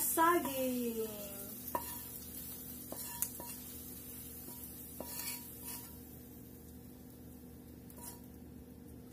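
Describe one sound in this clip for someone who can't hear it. A wooden spoon scrapes and taps against a frying pan.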